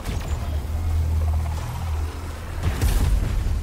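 A heavy gun fires a rapid burst.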